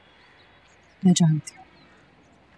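A woman speaks briefly and close by.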